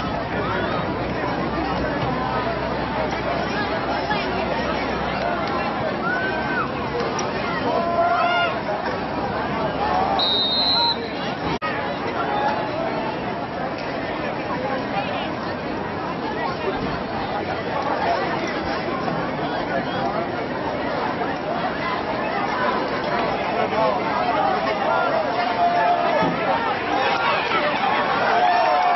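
A crowd of spectators chatters and cheers outdoors at a distance.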